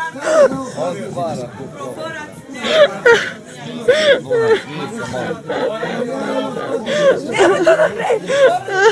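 Several men talk over one another with animation, close by.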